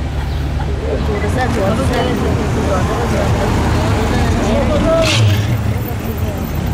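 A V8 muscle car burbles as it rolls through a corner.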